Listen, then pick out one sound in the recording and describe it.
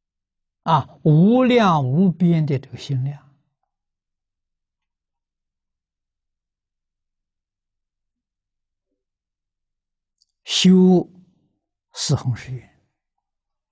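An elderly man speaks calmly in short phrases, close to a clip-on microphone.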